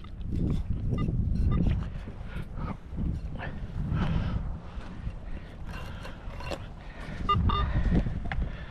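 A metal detector beeps.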